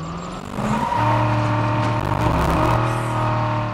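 A car engine hums steadily as the car drives off.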